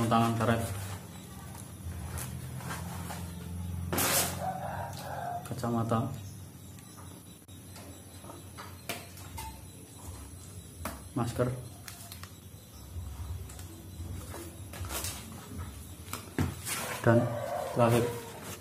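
Plastic bags rustle and crinkle as hands handle them.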